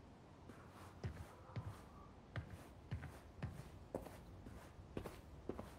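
Footsteps thud softly on a wooden floor at a walking pace.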